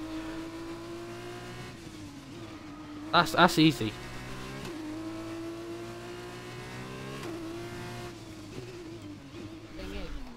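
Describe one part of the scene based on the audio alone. A racing car engine whines at high revs, shifting pitch with gear changes.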